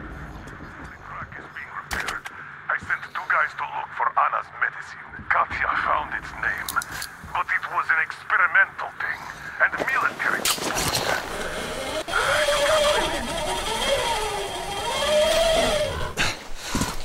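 A young woman talks calmly into a microphone.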